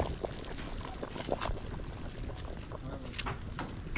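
Dried plums drop into a bubbling pot.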